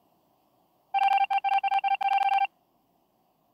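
Rapid electronic beeps sound as a video game's message types out letter by letter.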